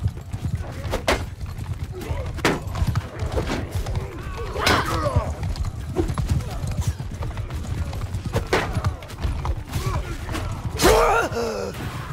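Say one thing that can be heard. Weapons clash and strike with sharp hits.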